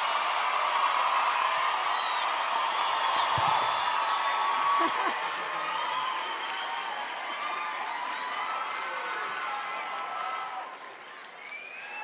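A large audience cheers and applauds loudly.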